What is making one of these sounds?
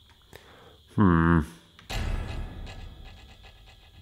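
A short electronic game sound effect plays when a character dies.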